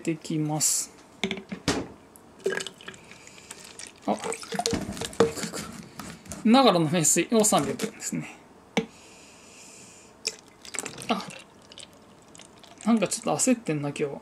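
Water pours and splashes into a bottle.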